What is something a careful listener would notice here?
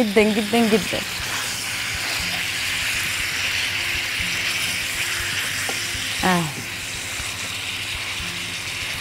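Chicken sizzles steadily in a hot pan.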